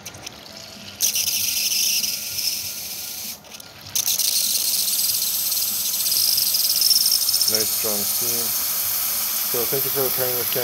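Steam hisses loudly from an espresso machine.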